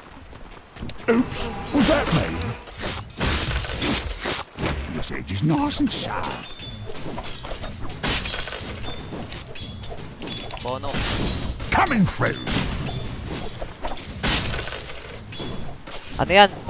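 Weapons clash and magic effects burst in a busy fantasy battle.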